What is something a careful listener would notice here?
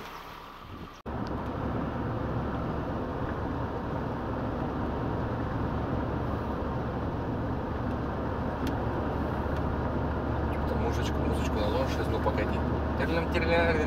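Tyres rumble on a rough road, heard from inside the car.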